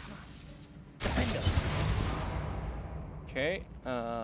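A sharp magical whoosh bursts out.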